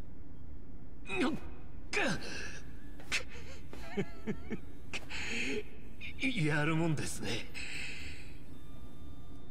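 A man groans in pain and strains, panting.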